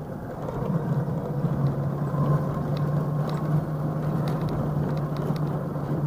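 Tyres rumble and rattle over cobblestones.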